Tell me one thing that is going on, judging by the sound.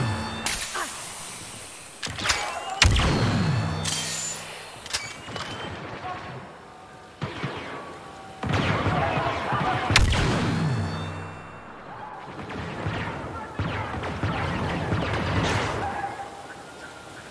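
Laser rifle shots crack in quick bursts.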